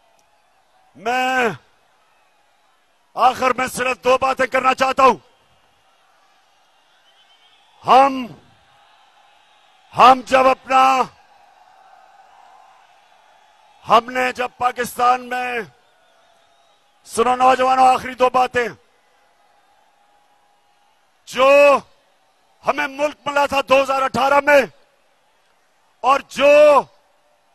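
A man shouts forcefully through a loudspeaker in short bursts with pauses.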